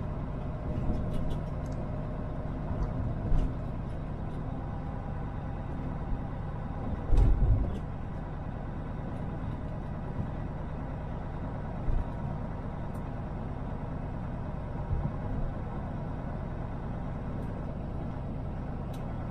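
Tyres hum on the road surface.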